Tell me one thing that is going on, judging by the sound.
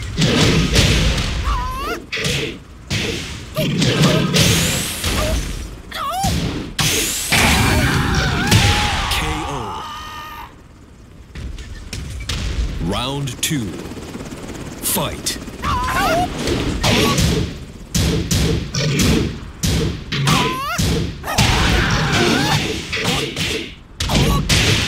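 Punches and kicks land with sharp, heavy thuds.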